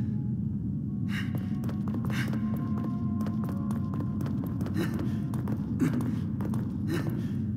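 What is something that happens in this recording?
Footsteps tread on a stone floor.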